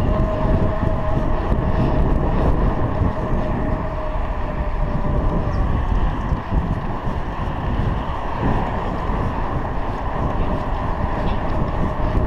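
Wind buffets the microphone as a bicycle rides along a road.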